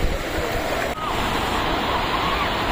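Waves wash and break onto a shore.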